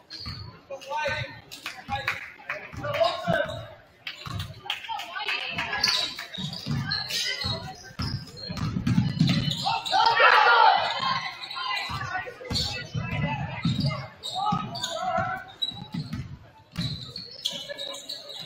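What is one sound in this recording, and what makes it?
A crowd of spectators murmurs and cheers.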